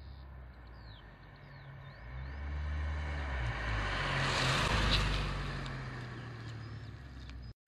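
A car approaches along a road, passes close by with a swelling engine and tyre rush, and drives away.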